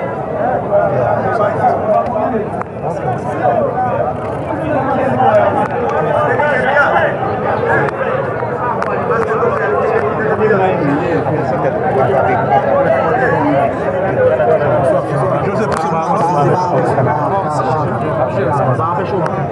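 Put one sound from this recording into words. A crowd of men talks loudly and excitedly close by, outdoors.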